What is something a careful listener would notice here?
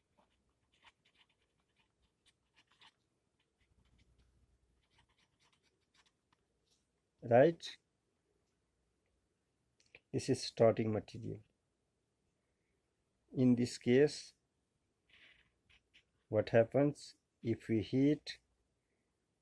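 A felt-tip pen squeaks and scratches on paper.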